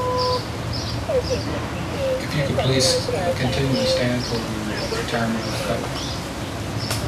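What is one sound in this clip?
People talk quietly outdoors nearby.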